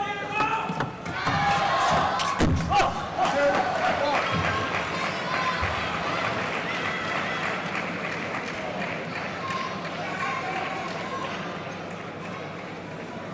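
A large crowd cheers and applauds in a big echoing hall, then slowly quiets down.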